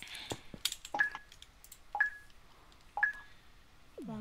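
A game countdown beeps three times, evenly spaced.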